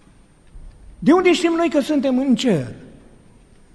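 A man chants a prayer in a steady, sung voice, echoing in a large hall.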